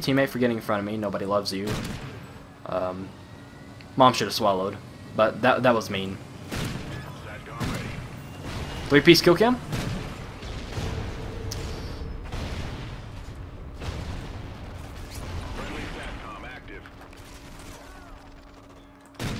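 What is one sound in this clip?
A sniper rifle fires sharp shots.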